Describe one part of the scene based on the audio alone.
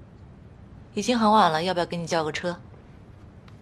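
A young woman speaks softly and calmly nearby.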